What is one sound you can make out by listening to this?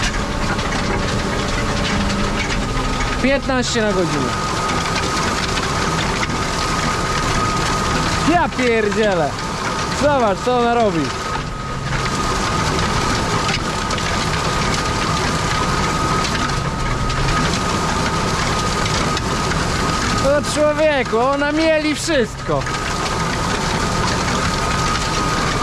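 A tractor engine drones steadily inside the cab.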